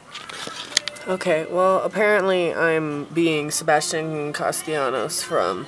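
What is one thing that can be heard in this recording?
A laptop plays a voice through its small speakers.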